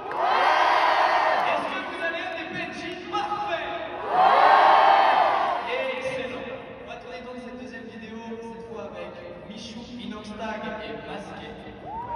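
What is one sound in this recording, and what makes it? A crowd of young people sings along loudly in a large echoing hall.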